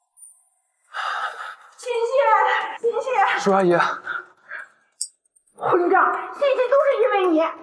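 A middle-aged woman scolds loudly.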